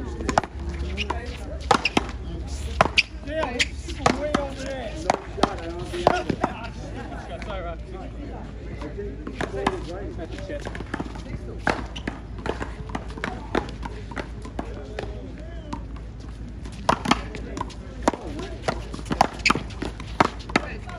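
Paddles smack a ball with sharp pops, echoing off a wall.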